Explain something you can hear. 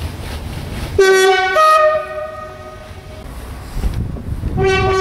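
A train horn blares several times.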